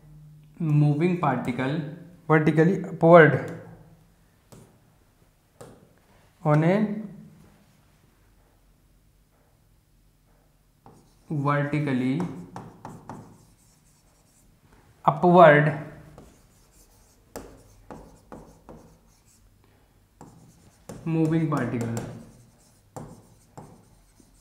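A marker squeaks and taps on a board as a man writes.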